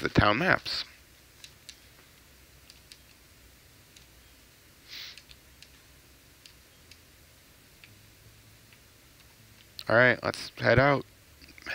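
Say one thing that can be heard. A young man speaks briefly and close to a microphone.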